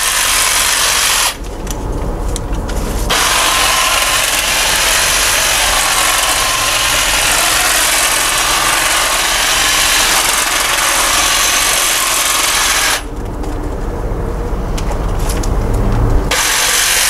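An electric hedge trimmer buzzes loudly, stopping briefly twice.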